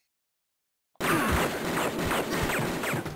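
Glass shatters.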